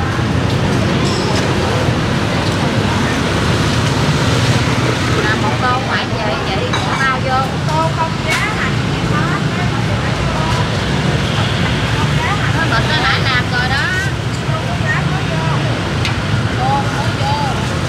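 A metal ladle stirs and scrapes in a large pot of soup.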